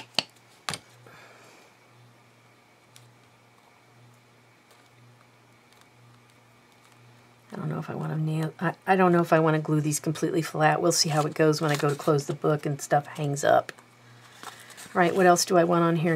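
Paper crinkles and rustles under fingers.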